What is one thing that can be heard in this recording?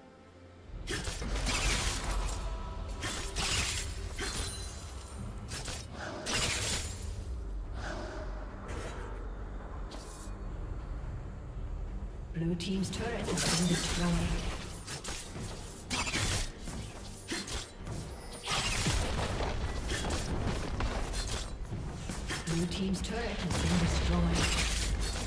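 Spells and blows from a video game battle burst and crackle in quick succession.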